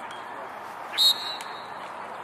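A referee's whistle blows a short blast.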